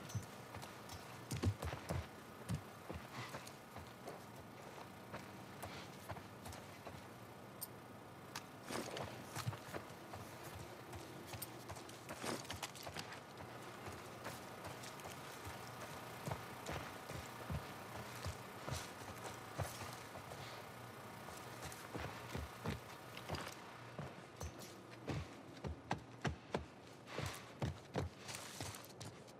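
Footsteps tread slowly over a hard floor.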